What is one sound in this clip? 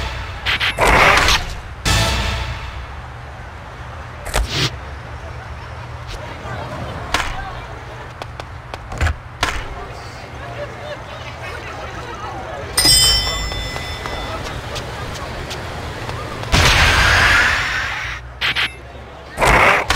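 Skateboard landings clack loudly.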